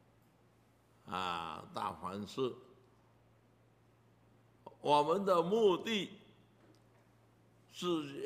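An elderly man speaks with animation in short bursts into a microphone.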